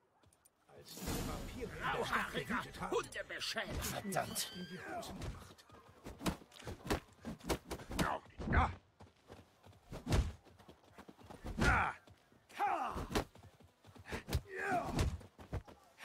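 Fists thud against bodies.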